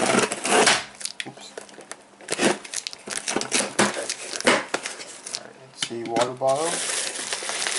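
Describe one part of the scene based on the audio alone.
Cardboard flaps rustle and scrape as a box is opened.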